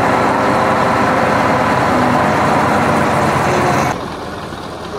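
A heavy truck engine rumbles loudly close by.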